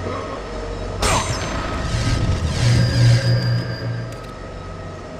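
A crackling magical burst flares and whooshes.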